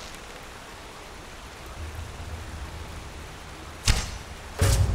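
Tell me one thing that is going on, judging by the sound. A bowstring creaks as it is drawn back.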